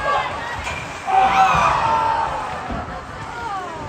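Spectators close by shout and cheer, echoing in a large rink.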